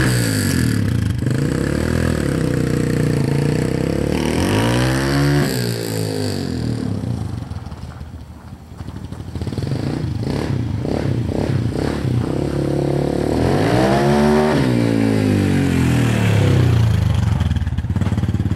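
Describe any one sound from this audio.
A dirt bike engine revs and pulls away, fades into the distance, then returns up close.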